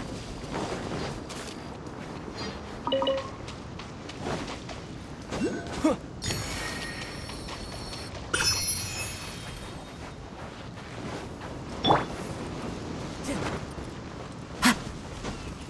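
Light footsteps run across sand and grass.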